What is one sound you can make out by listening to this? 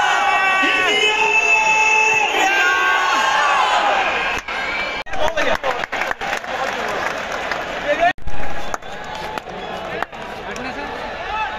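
A crowd cheers in the background.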